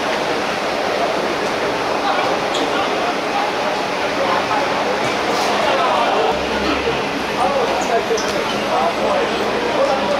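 A crowd of spectators chatters and calls out nearby.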